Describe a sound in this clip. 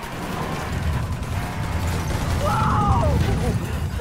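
A car crashes into something and tumbles with a heavy thud.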